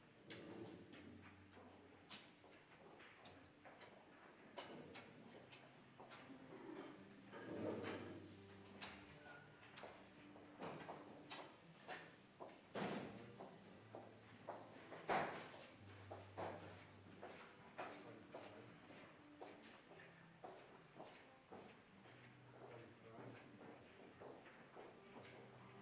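Footsteps shuffle and tap across a hard floor in a large echoing hall.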